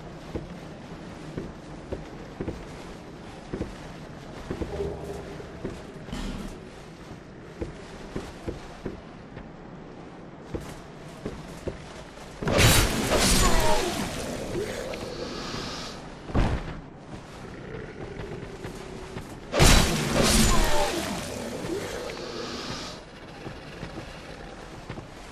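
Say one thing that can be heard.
Footsteps thud softly as a warrior runs.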